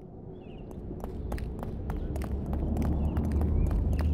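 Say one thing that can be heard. Footsteps tap steadily on a paved path outdoors.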